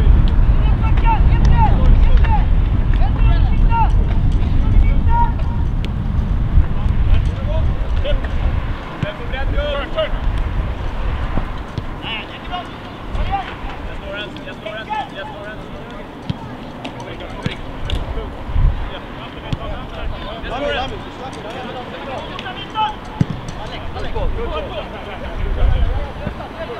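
Footballers shout to each other across an open field in the distance.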